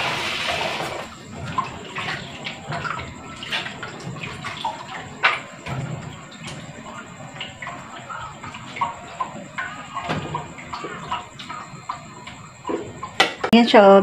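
Dishes clink and knock together.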